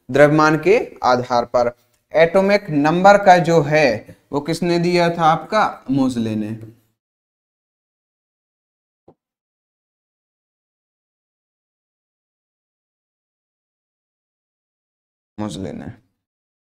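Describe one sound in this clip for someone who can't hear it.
A man explains with animation, close to a microphone.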